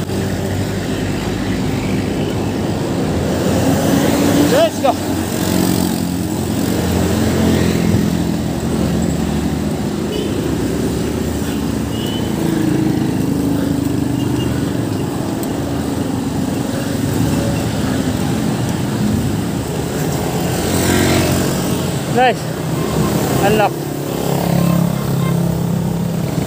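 Traffic rumbles past on the road.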